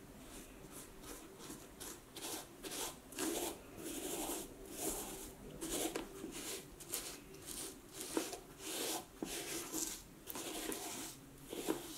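A cloth rubs back and forth over a leather boot in close, rhythmic swishing strokes.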